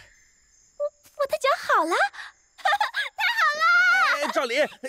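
A girl speaks excitedly.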